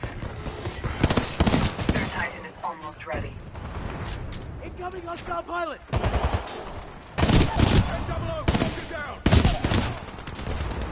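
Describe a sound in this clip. Gunfire from a game rattles in rapid bursts.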